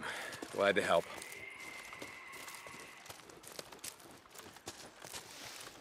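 Footsteps crunch through undergrowth and dry grass.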